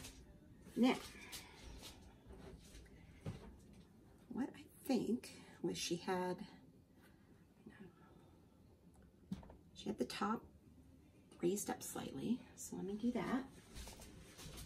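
A woman talks calmly close by, in short bursts with pauses.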